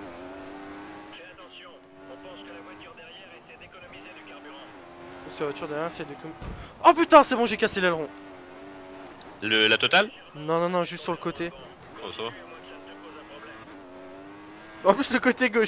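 A racing car engine whines at high revs, rising and falling as it shifts gears.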